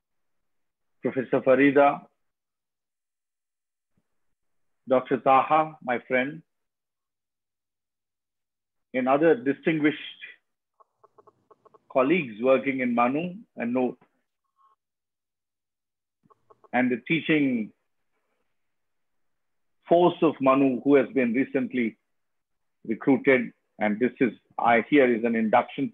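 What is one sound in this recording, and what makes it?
A man speaks calmly in bursts over an online call.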